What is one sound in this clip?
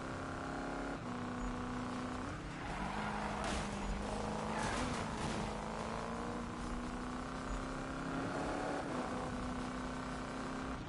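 A car engine roars and revs steadily, shifting gears.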